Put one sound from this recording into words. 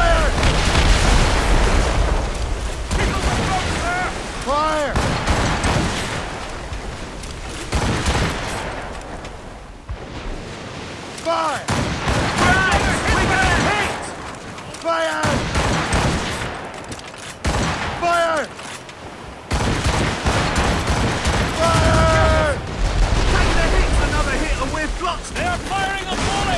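Cannons boom in loud bursts.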